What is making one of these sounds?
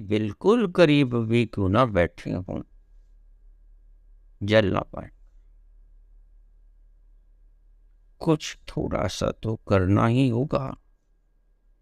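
An elderly man speaks calmly and close up, with pauses.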